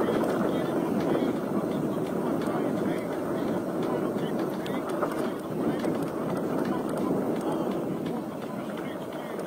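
Bicycle tyres rumble steadily over a bumpy dirt track.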